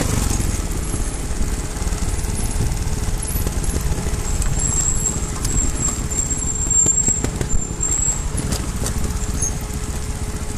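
Tyres crunch and rattle over loose rocks.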